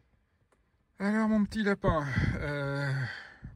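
A car radio plays through the car speakers.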